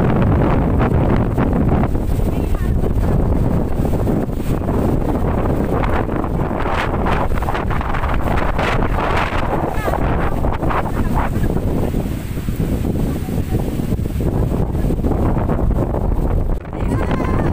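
Strong wind roars and buffets the microphone outdoors.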